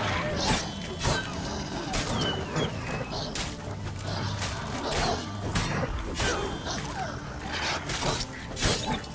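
Footsteps rustle through tall grass and bushes.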